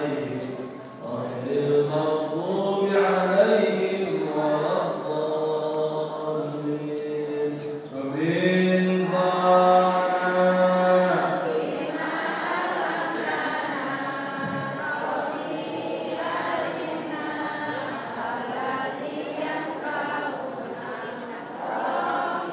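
A young man recites in a melodic chanting voice through a microphone.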